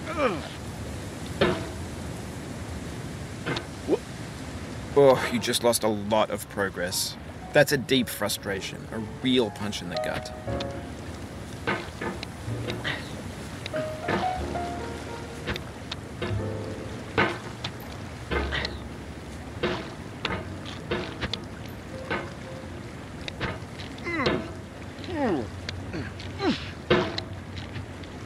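A hammer clanks and scrapes against rock.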